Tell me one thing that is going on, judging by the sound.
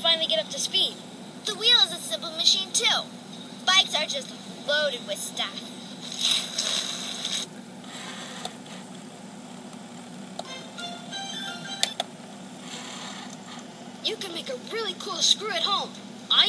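A girl speaks excitedly through a small loudspeaker.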